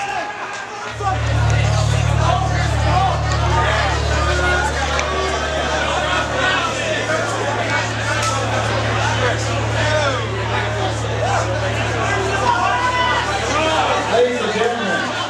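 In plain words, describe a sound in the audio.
A band plays loud, heavy rock music with pounding drums and distorted guitars.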